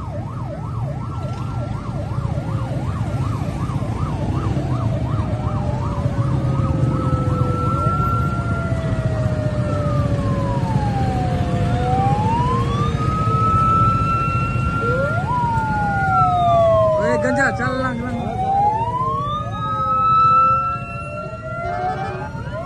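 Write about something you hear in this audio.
Vehicle engines rumble by steadily.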